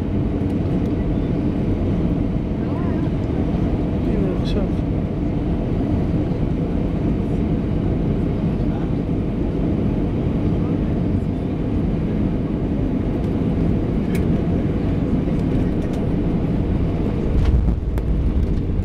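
A jet engine roars steadily close by.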